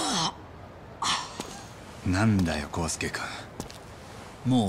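A man speaks in a low, firm voice.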